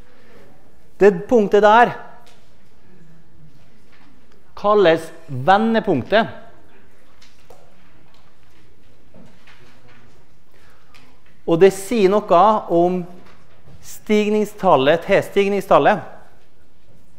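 An elderly man lectures calmly in short bursts through a microphone.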